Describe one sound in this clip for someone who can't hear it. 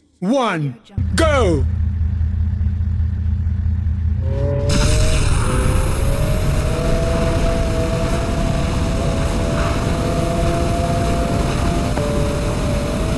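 A motorbike engine idles and then revs up loudly.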